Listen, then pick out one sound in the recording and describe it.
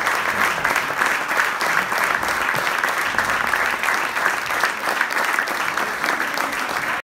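A large school band plays loudly in an echoing hall.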